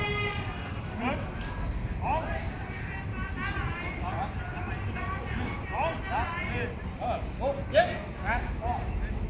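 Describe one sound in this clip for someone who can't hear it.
A group of men chatter and call out in the open air.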